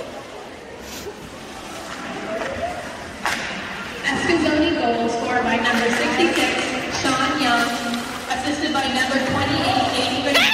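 Ice skates scrape on the ice in a large echoing hall.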